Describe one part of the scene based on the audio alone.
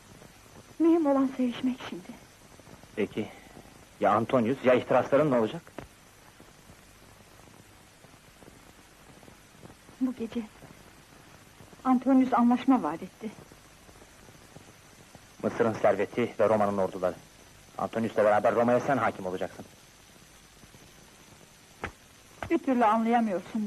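A woman speaks softly and intimately, close by.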